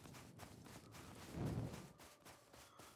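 A torch fire crackles and whooshes.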